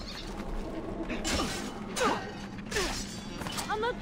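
Steel blades clash as two men fight ahead.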